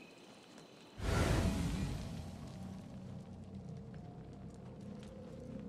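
A sudden rush of air roars past and slowly fades.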